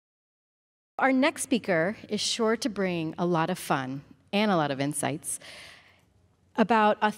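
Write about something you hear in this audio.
A woman speaks into a microphone over a loudspeaker, announcing calmly to a room.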